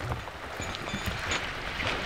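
Paws patter on wet wooden boards.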